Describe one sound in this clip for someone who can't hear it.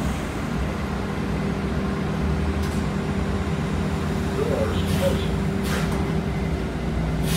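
A bus engine hums and rumbles steadily while the bus drives.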